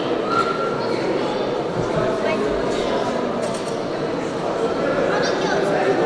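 A man reads out announcements in a large echoing hall.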